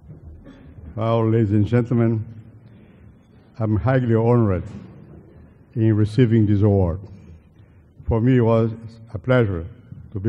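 An elderly man speaks calmly into a microphone, heard over loudspeakers.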